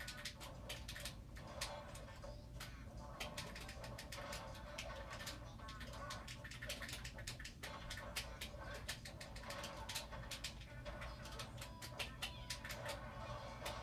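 Video game hits and blasts crack and whoosh quickly from a television speaker.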